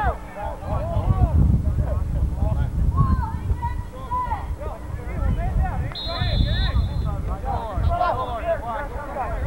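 Young men call out and chatter outdoors.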